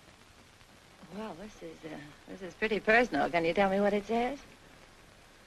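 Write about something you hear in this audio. A woman speaks softly and warmly, close by.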